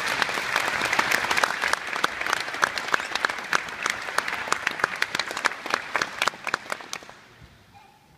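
An audience applauds in a large echoing hall, then the clapping dies away.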